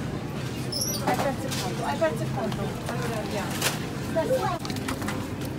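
A metal shopping cart rattles.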